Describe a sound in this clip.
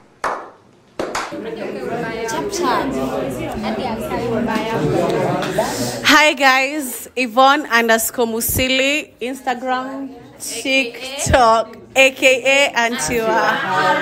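A young woman speaks with animation, close by.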